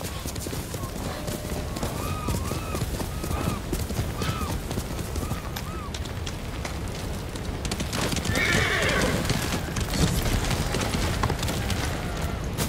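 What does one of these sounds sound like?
A horse gallops, hooves thudding steadily.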